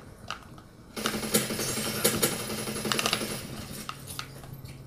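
Rapid gunfire and explosions from a video game play through a television speaker.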